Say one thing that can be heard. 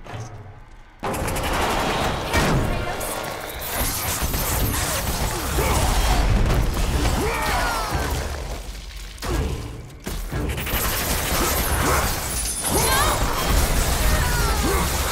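Blades whoosh and slash through the air in quick bursts.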